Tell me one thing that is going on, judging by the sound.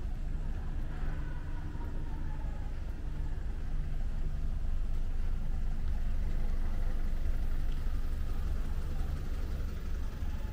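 Car engines idle and hum in slow traffic outdoors.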